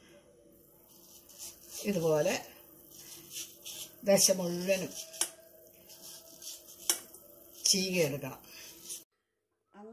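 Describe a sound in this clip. A knife scrapes and peels the skin off a mango.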